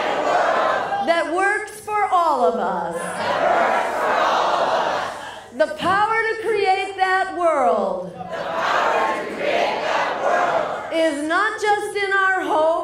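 A woman speaks loudly through a microphone in short phrases.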